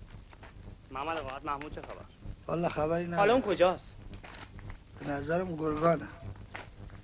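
Men speak calmly nearby.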